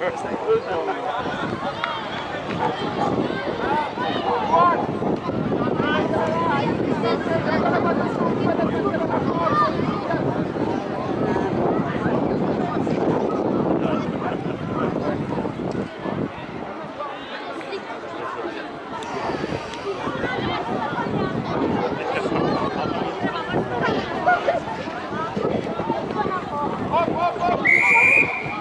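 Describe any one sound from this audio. Children shout to each other as they play.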